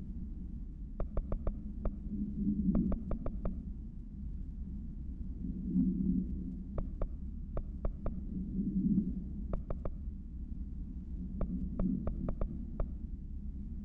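Short menu clicks tick in quick bursts.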